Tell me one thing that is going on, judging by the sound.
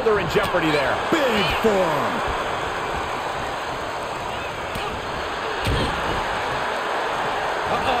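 A body hits a wrestling mat with a heavy thud.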